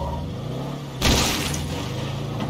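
A car hits bodies with a wet thud.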